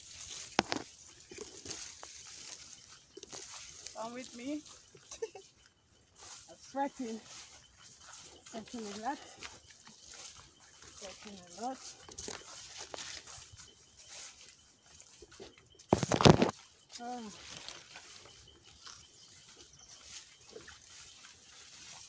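Leaves rustle and twigs snap underfoot as someone walks through dense brush.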